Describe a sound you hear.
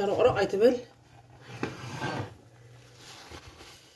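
A pot is set down on a glass cooktop with a clunk.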